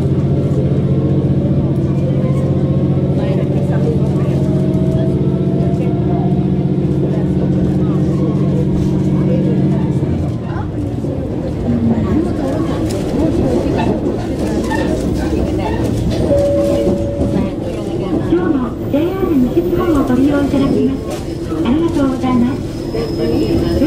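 A train rumbles along the tracks, heard from inside a carriage.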